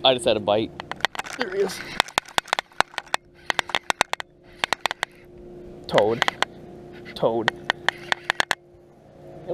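A fishing reel clicks and whirs rapidly as line is reeled in.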